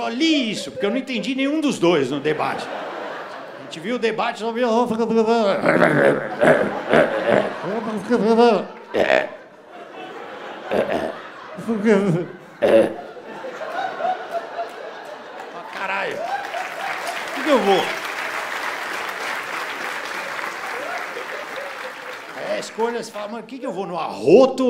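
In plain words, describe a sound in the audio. A man talks with animation into a microphone, heard through loudspeakers in a large hall.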